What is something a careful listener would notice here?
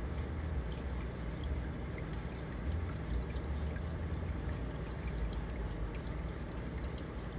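Water in an aquarium bubbles and hums steadily.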